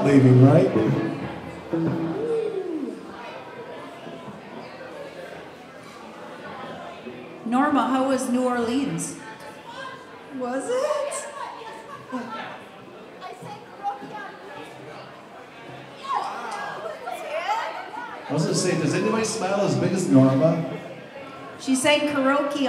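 A man talks over loudspeakers.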